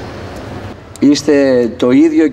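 A man speaks into a microphone over loudspeakers outdoors.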